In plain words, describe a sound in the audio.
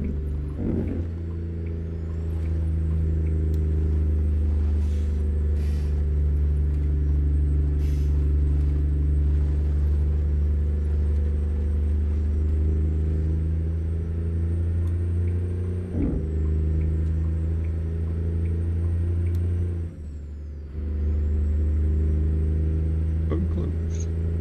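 A truck's diesel engine drones low and steady, briefly dropping off and returning near the end.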